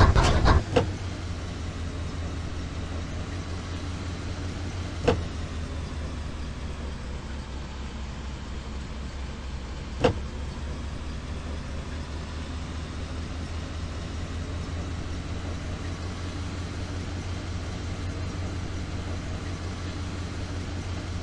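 A car engine hums steadily while driving over rough ground.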